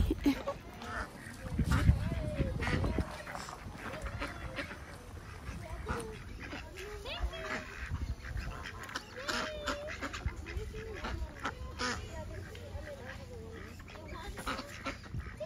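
Ducks and geese quack and honk close by.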